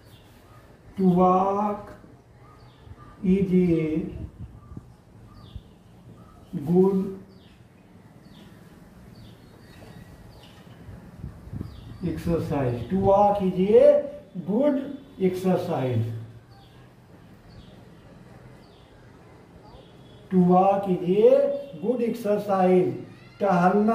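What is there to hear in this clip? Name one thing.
An elderly man speaks slowly and clearly, close by, as if teaching.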